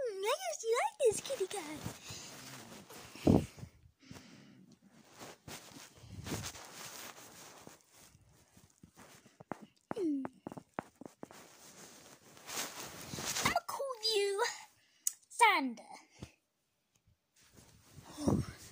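A young boy laughs close to a phone's microphone.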